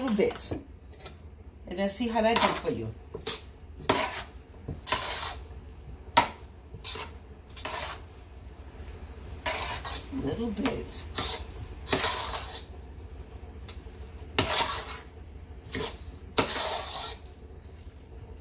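Hands squish and mash soft food in a metal pot.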